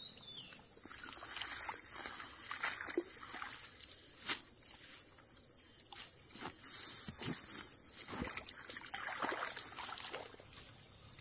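Wet grass and weeds rustle and tear as they are pulled up by hand.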